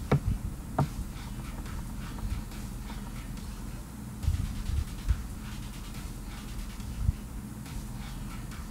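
A young man talks quietly and casually close to a microphone.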